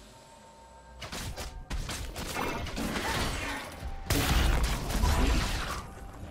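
Fast game combat effects crackle and thud.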